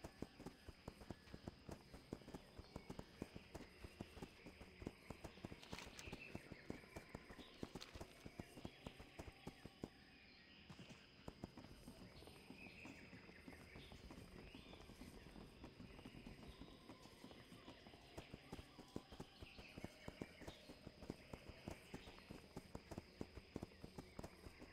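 A mount's hooves gallop on a path.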